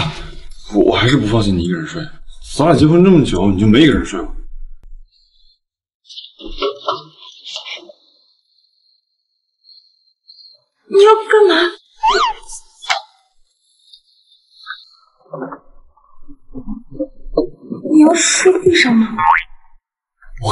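A young woman speaks in surprise, close by.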